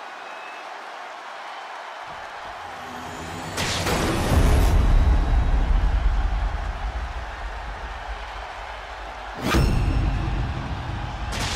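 A large crowd cheers in a big echoing arena.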